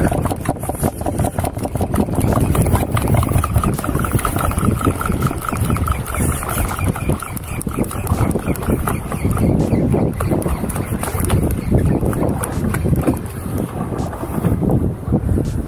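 A fishing reel clicks and ratchets as it is wound.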